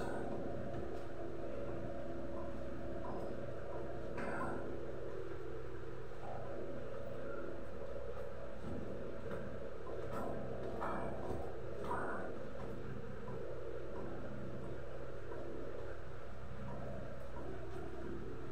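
A spoon stirs and clinks in a small bowl.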